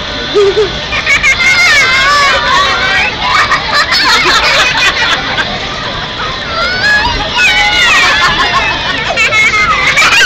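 Young children shriek excitedly in high voices.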